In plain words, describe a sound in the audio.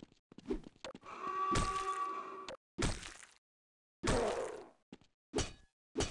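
An axe strikes flesh with heavy thuds.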